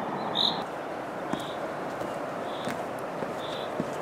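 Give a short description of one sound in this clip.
A person's footsteps scuff on a stone path.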